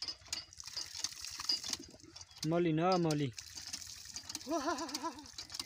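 A hand pump's handle clanks rhythmically as it is worked.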